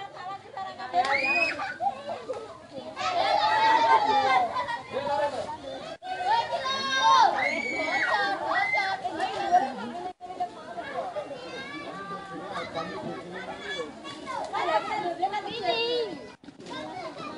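Young girls shout and scream excitedly outdoors.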